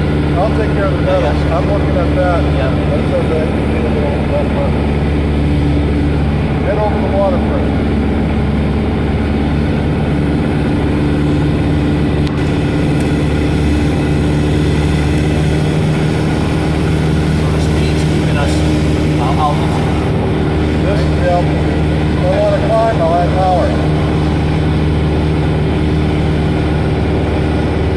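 An aircraft engine drones steadily throughout.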